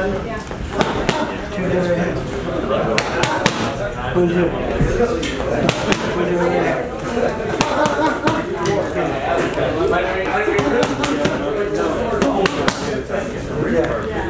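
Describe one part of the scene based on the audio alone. Boxing gloves smack sharply into punch mitts.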